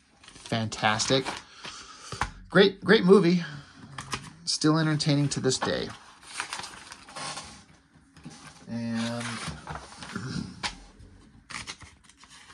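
Magazine pages rustle and flip as they are turned by hand.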